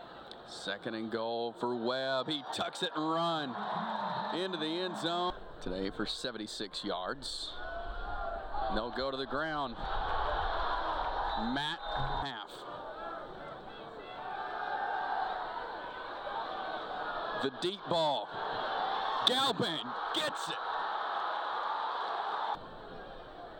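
A large crowd cheers in an open stadium.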